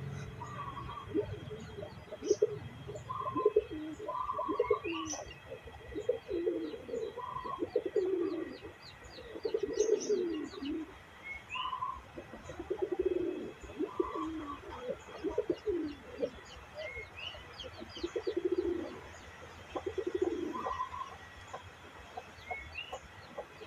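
A pigeon coos softly and repeatedly close by.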